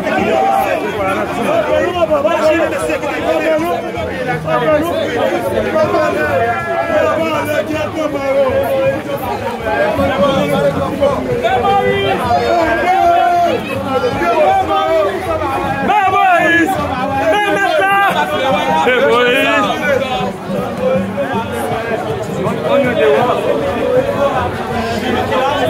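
A large crowd of men and women sings and chants loudly outdoors, close by.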